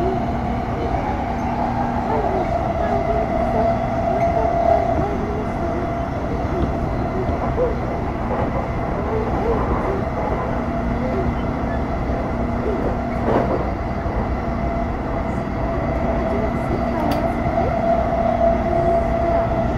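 An electric train rumbles and hums steadily as it runs along the track.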